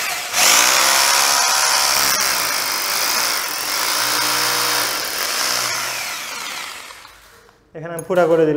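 A hammer drill grinds loudly into a wall.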